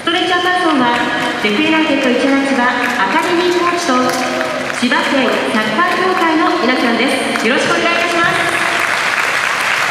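A large stadium crowd sings and chants together in unison.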